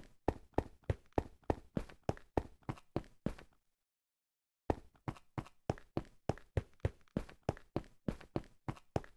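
Footsteps tap quickly and evenly on a hard stone floor.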